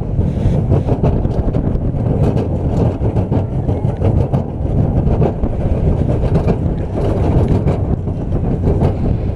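Coaster cars rattle and clack along a track.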